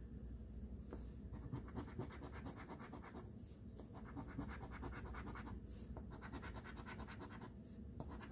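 A coin scratches rapidly across a scratch-off lottery ticket.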